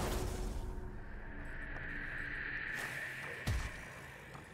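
A shimmering chime rings out and fades.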